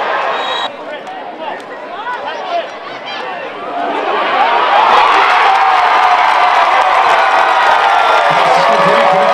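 A large crowd outdoors talks and shouts, then cheers loudly, and the cheering swells.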